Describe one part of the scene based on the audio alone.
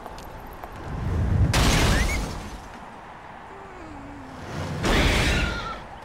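A tram rushes past with a loud whoosh.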